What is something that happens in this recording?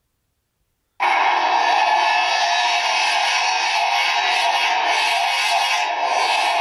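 A phone game plays loud music and effects through a small speaker.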